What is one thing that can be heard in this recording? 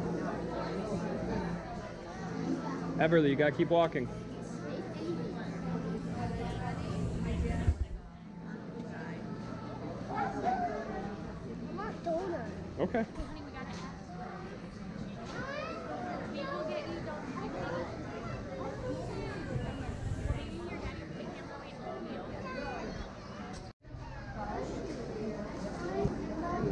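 A crowd of men and women chatter all around in a busy room.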